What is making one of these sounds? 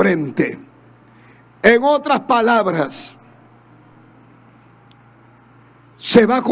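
A man speaks with animation through a microphone in a large echoing hall, with pauses between phrases.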